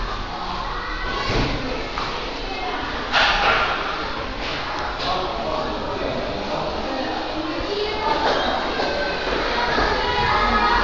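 Footsteps climb a stairway.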